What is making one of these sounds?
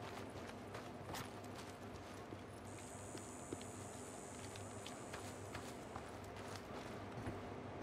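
Footsteps crunch on gravel and grass.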